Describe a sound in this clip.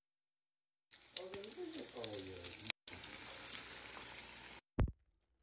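Bacon sizzles and crackles in a hot pan.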